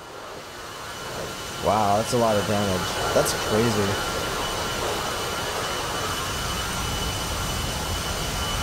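A jet aircraft's engines roar steadily in flight.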